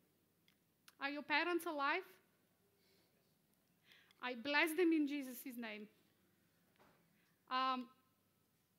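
A woman speaks calmly in short bursts with pauses.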